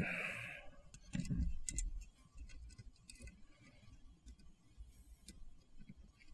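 Small metal parts click and tap together as they are fitted by hand.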